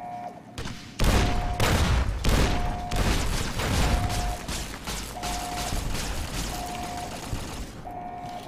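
A rapid-fire energy gun fires in fast bursts.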